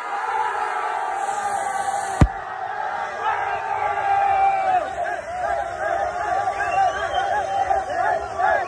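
A crowd of young men sings and chants loudly in unison.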